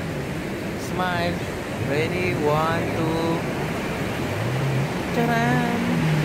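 A young woman speaks in a high, excited voice.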